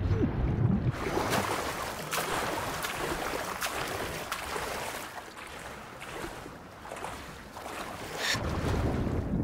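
Water splashes and laps at the surface.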